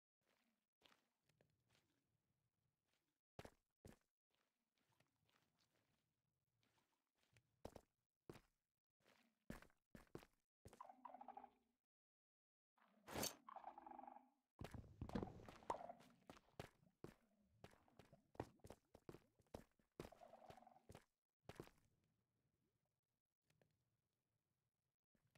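Footsteps tap and crunch on stone.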